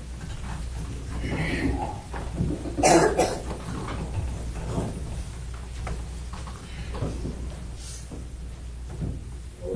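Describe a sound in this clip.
Footsteps shuffle on a wooden floor.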